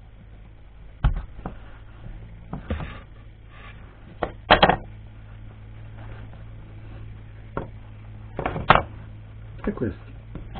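Small wooden pieces knock and clack on a workbench.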